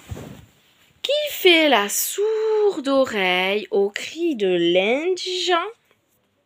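A woman speaks close to a phone microphone in an animated, sing-song voice.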